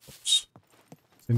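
Footsteps clatter on a wooden ladder.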